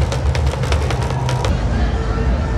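Sticks beat a marching drum.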